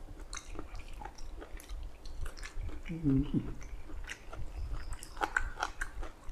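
A man chews and slurps food close to a microphone.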